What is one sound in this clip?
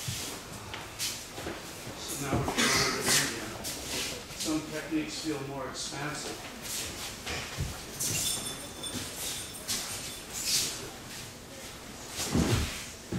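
Heavy cloth uniforms swish and rustle.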